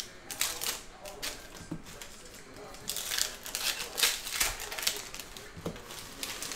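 Plastic card wrappers crinkle and rustle close by.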